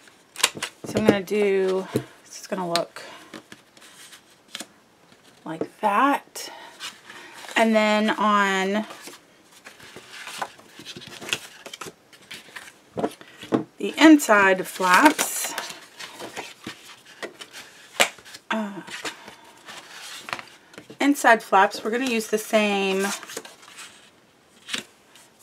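Stiff card paper rustles and taps softly as it is handled.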